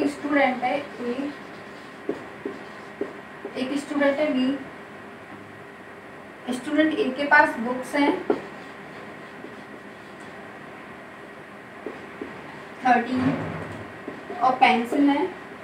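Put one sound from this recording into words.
A young woman speaks calmly, close by, in short phrases.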